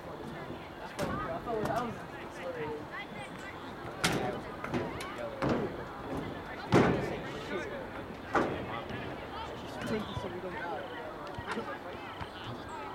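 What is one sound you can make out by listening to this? Players and spectators shout and call out across an open field outdoors.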